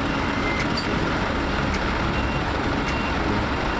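Heavy trucks roll slowly past.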